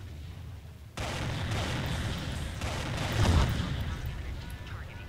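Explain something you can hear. Weapons fire in a rushing burst with a loud blast.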